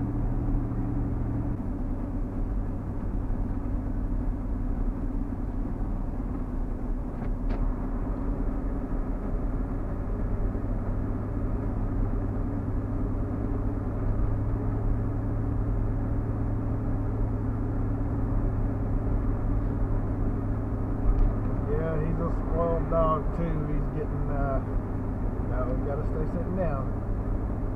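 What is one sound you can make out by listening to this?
A car's engine and tyres hum from inside the car as it drives at road speed on a paved road.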